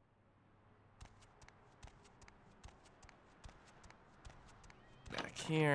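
Footsteps thud steadily on wooden stairs.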